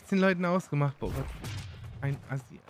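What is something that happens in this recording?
Weapon blows strike in a fight.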